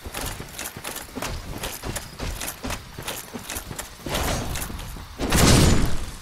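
Metal armour clanks with quick footsteps.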